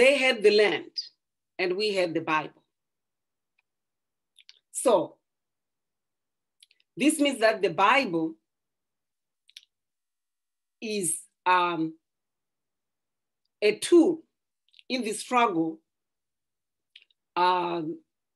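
A middle-aged woman speaks calmly in short phrases, heard over an online call.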